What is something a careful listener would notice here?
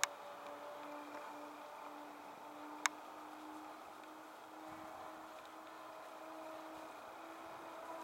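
A small propeller plane drones steadily in the distance.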